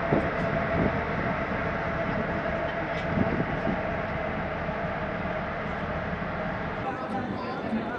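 Wind blows steadily, with a low rumble, outdoors.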